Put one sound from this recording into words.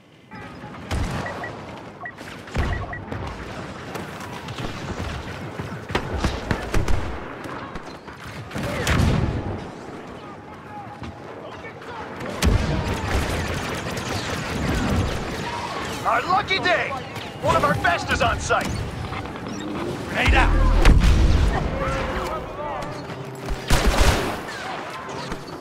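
Blaster guns fire in quick bursts.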